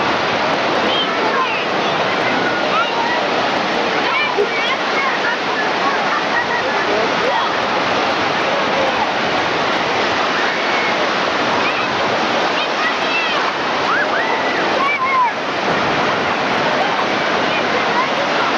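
Children shout and squeal playfully nearby.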